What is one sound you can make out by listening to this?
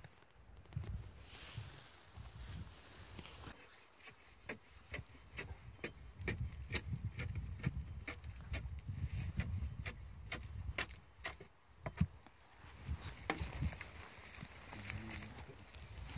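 Small clicks and taps come from the boot being handled.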